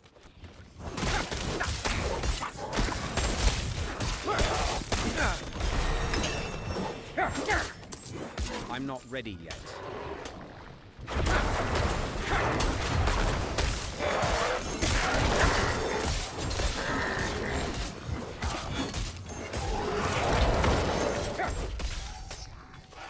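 Blows and spell blasts crash in a rapid game fight.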